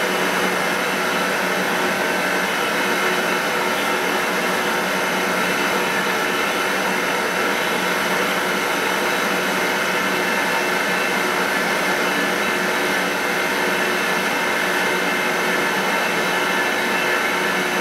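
A milling machine spindle whirs steadily.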